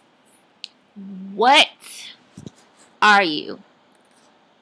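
A young woman speaks with animation close to a microphone, her voice rising in pitch.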